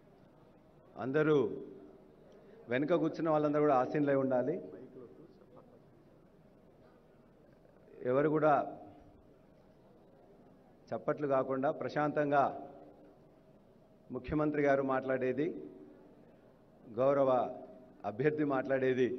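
A man speaks loudly and with emphasis over a loudspeaker in a large echoing hall, in short bursts.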